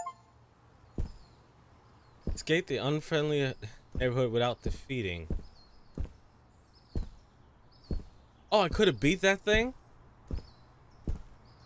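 Footsteps tap slowly on hard pavement.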